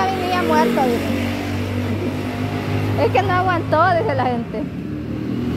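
A motorcycle engine hums as it passes on the street.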